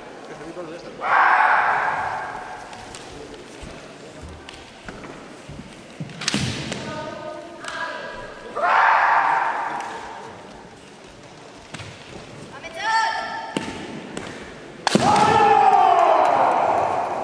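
Fighters shout loudly in an echoing hall.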